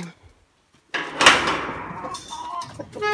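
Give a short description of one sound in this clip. A metal gate latch scrapes and rattles.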